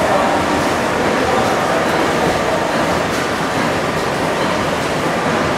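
A large steam engine runs steadily with a loud mechanical churning and rumble.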